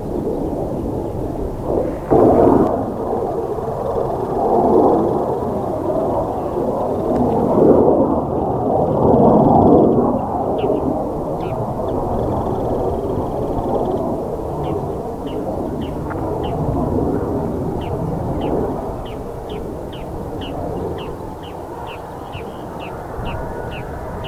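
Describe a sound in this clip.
A jet engine roars steadily overhead, rising and falling as the jet banks.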